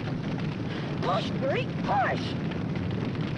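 A boy cries out with strain.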